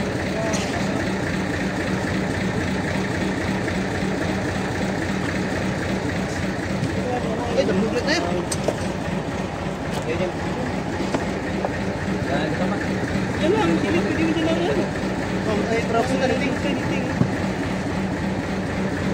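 A boat engine drones.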